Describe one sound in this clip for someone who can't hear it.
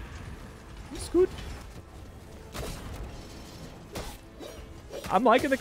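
Game sword slashes strike with short sharp hits.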